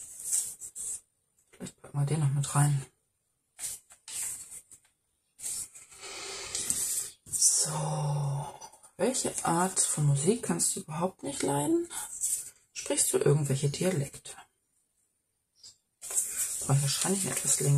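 Paper slips rustle softly as they are handled and pressed down.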